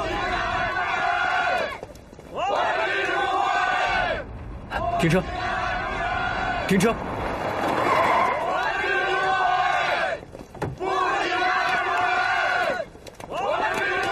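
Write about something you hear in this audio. A crowd of men and women chants loudly outdoors.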